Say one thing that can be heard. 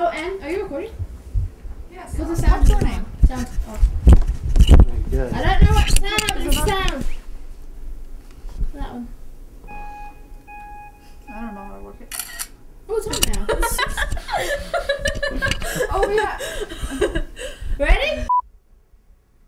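Young men talk and laugh close by indoors.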